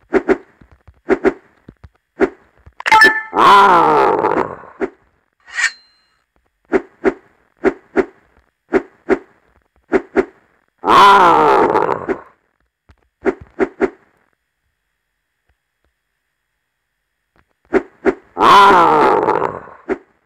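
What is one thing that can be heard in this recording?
Short bouncy jump sound effects play again and again.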